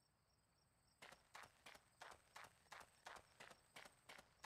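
Running footsteps thud quickly and evenly.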